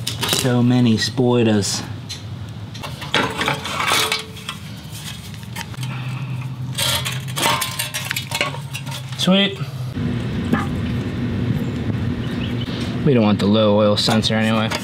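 Metal tools clink and scrape against a small engine.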